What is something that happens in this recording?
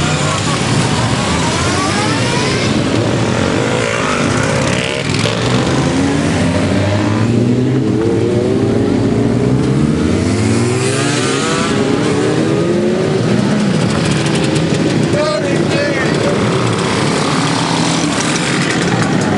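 Motorcycle engines rumble and rev as bikes ride past one after another.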